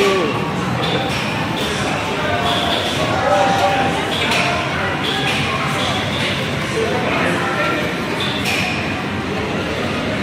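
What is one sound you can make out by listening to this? Arcade machines play electronic music and beeping game sounds.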